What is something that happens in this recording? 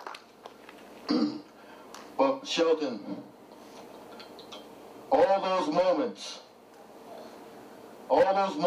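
A man speaks slowly into a microphone, heard through a loudspeaker.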